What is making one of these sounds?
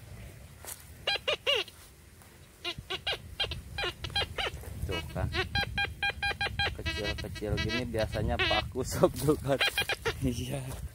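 A metal detector gives short, high beeps in quick bursts.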